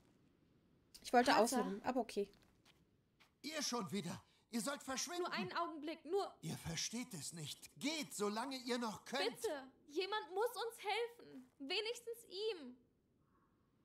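An elderly man speaks angrily and urgently.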